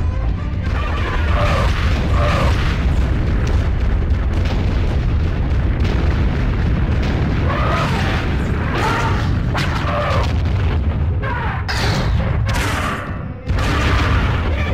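Energy blasts roar with a deep, steady rumble.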